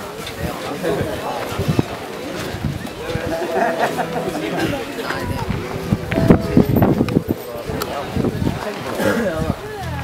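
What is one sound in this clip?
A choir of men and women sings together.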